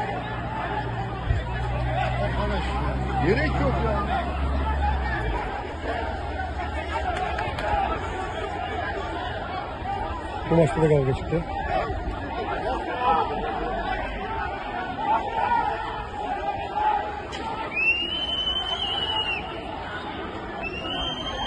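A crowd of men shout and argue outdoors.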